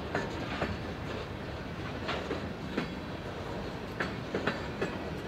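A freight train rumbles past with a steady low roar.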